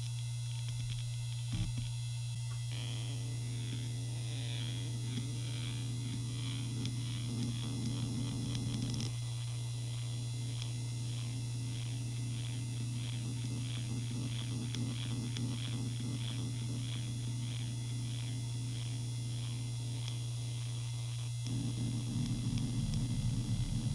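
A hard drive hums steadily.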